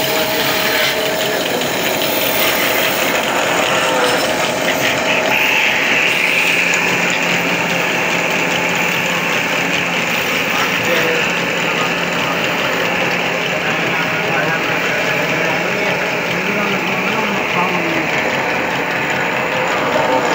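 A spinning metal rod scrapes against a tool.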